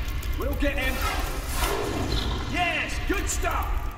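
A magic blast bursts and fizzes.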